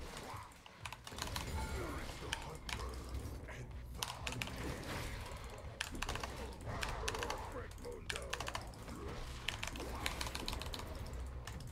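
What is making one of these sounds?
Game spell effects whoosh and clash during a fight.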